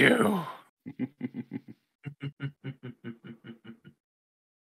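A man laughs in short bursts through an online call.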